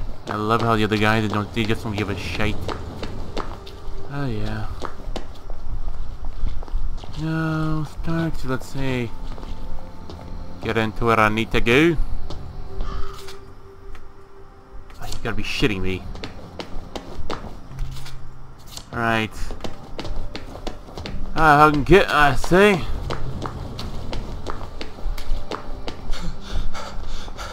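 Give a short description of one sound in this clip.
Footsteps tap on cobblestones at a steady walking pace.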